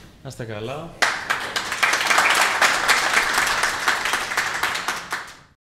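A crowd applauds with steady clapping in a room.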